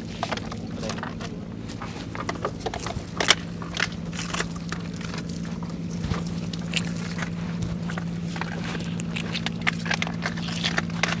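Water splashes and drips as a net is pulled from the water into a boat.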